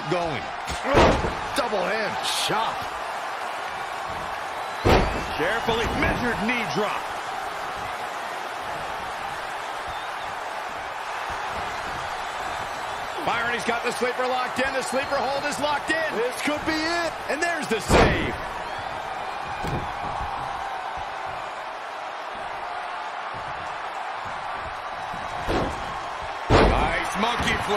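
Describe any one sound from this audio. Bodies slam heavily onto a wrestling mat.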